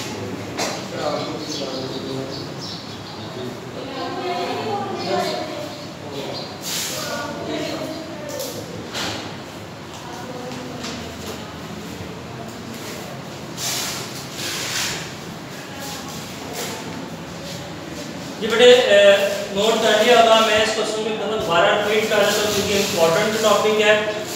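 A man talks steadily, louder and more animated toward the end.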